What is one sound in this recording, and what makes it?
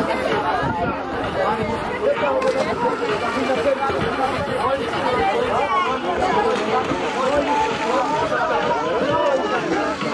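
A swimmer splashes into the sea after jumping from a boat.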